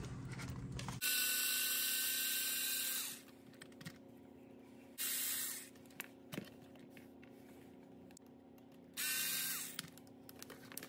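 An electric screwdriver whirs in short bursts.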